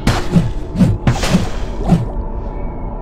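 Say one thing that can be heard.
A sword clashes and slashes in a fight.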